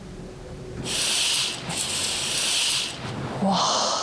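A curtain rustles as it slides open.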